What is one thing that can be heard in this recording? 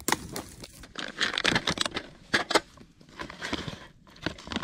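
Dry food rustles in a foil pouch.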